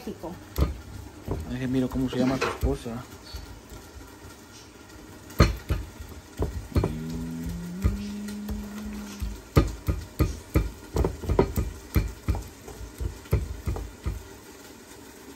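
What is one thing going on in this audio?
A stone pestle grinds and knocks in a stone mortar.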